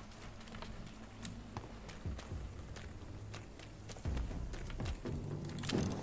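Footsteps tread on cobblestones.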